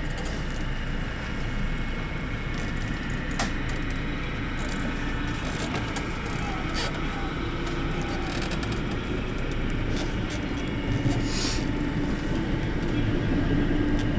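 Train wheels click over rail joints now and then.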